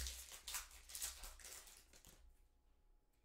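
Foil wrapping crinkles and rustles as hands tear it open.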